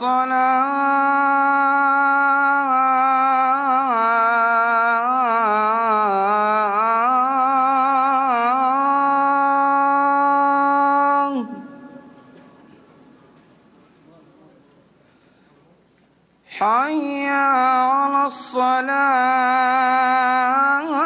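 A man chants a long, drawn-out call through loudspeakers, echoing outdoors.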